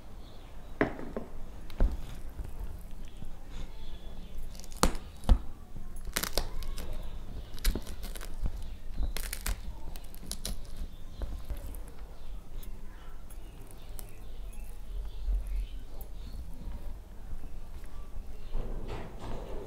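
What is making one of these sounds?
Fingers mix and squish rice on a steel plate, close to the microphone.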